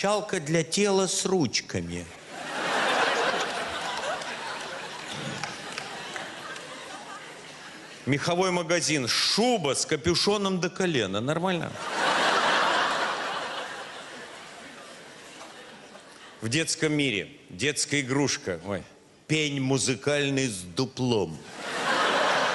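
An elderly man reads aloud calmly into a microphone.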